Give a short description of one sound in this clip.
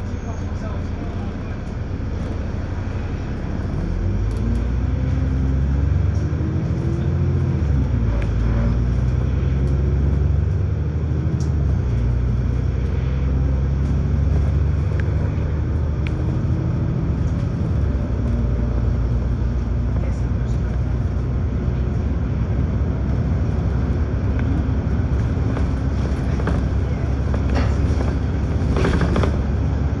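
A bus rumbles steadily along the road.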